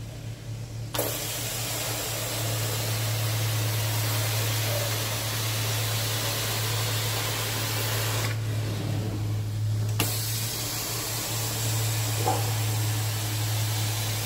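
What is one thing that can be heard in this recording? A carpet extraction wand hisses loudly as it sucks up water.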